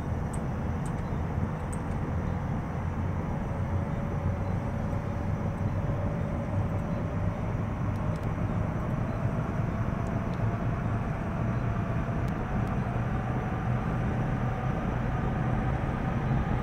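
An aircraft engine hums steadily, with a whine that slowly rises in pitch.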